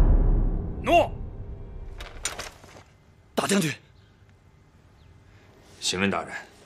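A man shouts sharply nearby.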